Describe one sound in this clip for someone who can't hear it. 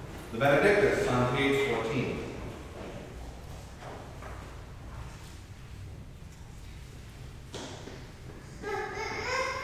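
A man chants in a reverberant room, heard from a distance.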